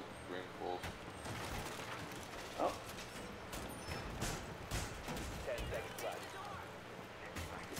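Wooden boards crack and splinter under heavy blows.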